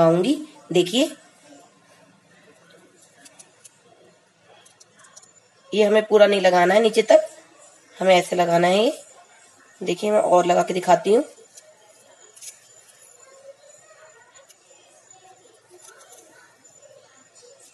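A knife slices through an onion with soft crunches.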